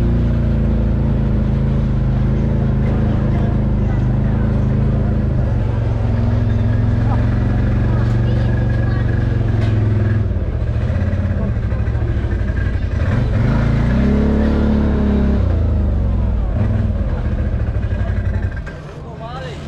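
A motorcycle engine idles and rumbles close by, then cuts off.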